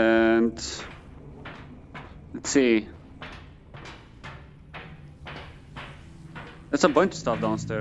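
Footsteps clang on a metal grating walkway.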